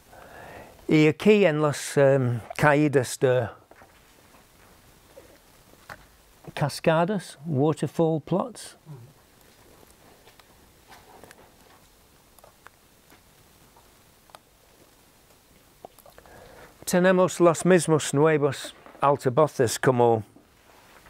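An elderly man speaks calmly into a nearby microphone.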